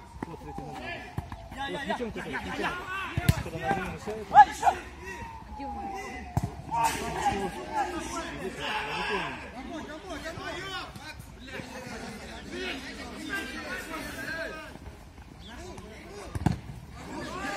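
A football is kicked hard outdoors.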